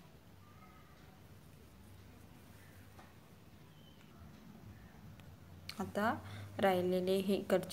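Satin cords rustle softly as hands knot them.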